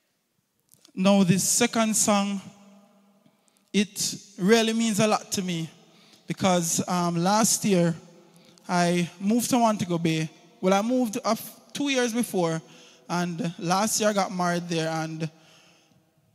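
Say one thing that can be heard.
A young man speaks calmly into a microphone.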